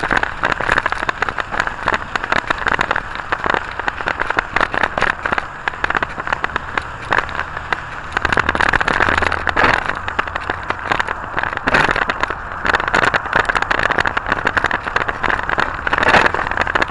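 A train rattles and clatters steadily along the tracks.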